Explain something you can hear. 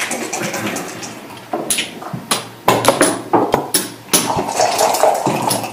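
Backgammon checkers click and clack as a player stacks and moves them on a wooden board.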